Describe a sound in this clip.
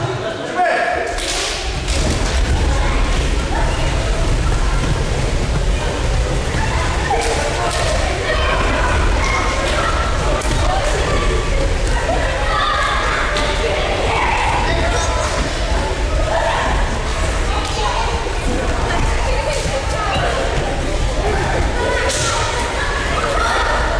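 Many children and adults chatter and call out in a large echoing hall.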